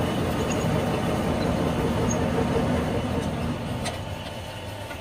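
A drill bit grinds into spinning metal.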